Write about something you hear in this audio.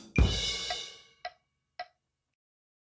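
A drum kit is struck and a cymbal crashes, ringing briefly.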